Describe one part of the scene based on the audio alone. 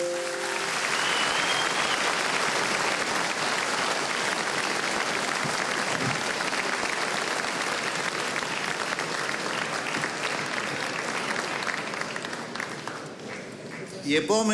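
A crowd applauds and cheers loudly in a large hall.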